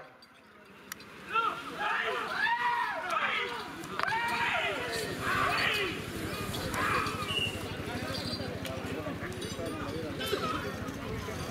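Several men shout loudly outdoors, urging on bulls.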